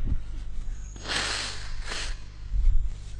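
A man sniffs and breathes heavily close to a microphone.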